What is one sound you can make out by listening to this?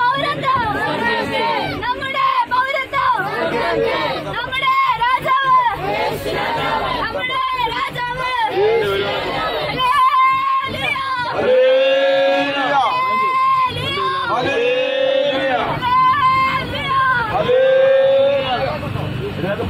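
A group of women and men sing together loudly, close by.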